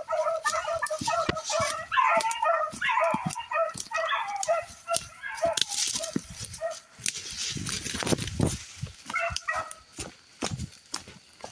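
Footsteps crunch quickly through dry leaves on the ground.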